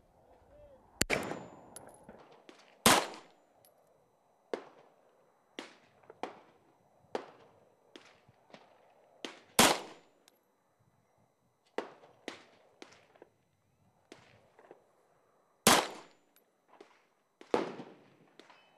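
A pistol fires sharp, loud shots outdoors, one at a time.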